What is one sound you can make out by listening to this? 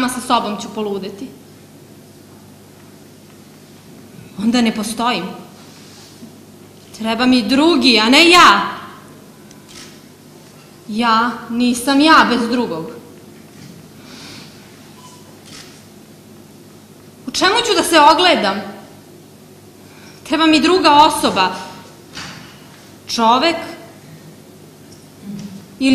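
A young woman speaks with feeling through a microphone in a large hall, with pauses between lines.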